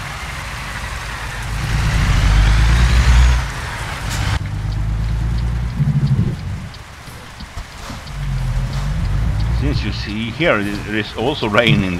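A truck engine rumbles deeply and rises and falls as it drives.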